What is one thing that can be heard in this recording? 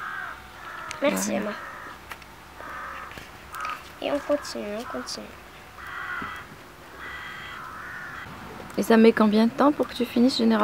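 A young girl talks quietly close by.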